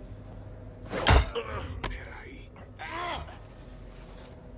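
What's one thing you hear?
Heavy blows thud as a man is knocked down in a brief scuffle.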